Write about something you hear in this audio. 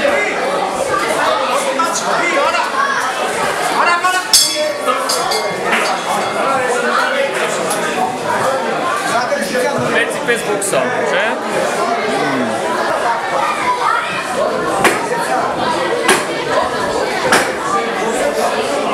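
A crowd of adults and children chatters in an echoing hall.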